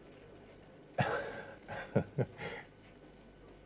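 A middle-aged man laughs softly close by.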